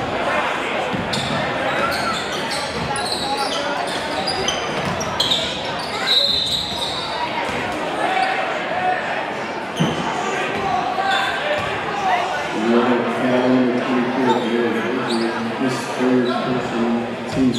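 Basketball shoes squeak sharply on a wooden court.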